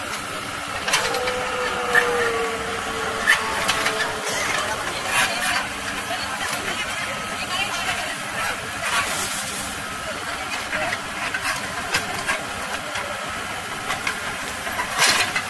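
An excavator engine rumbles nearby.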